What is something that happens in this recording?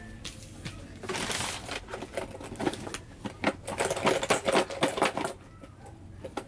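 Plastic crinkles and rustles.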